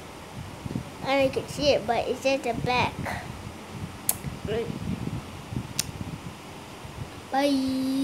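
A young boy talks playfully close to the microphone.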